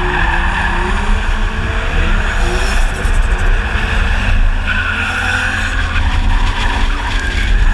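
Wind rushes loudly past an open car window.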